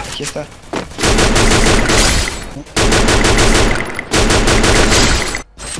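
Rapid gunfire rattles in loud, long bursts.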